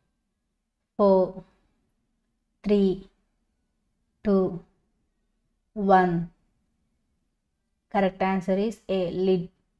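A young woman speaks calmly into a nearby microphone in short phrases with pauses.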